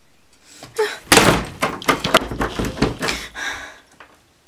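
A door handle rattles as a door opens.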